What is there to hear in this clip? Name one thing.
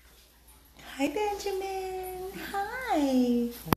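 A small dog whines in long, high, wavering cries.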